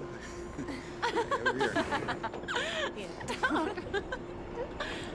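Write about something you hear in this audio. A young man shouts and laughs loudly.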